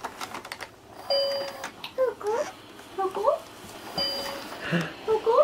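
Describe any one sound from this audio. A woman speaks nearby with animation.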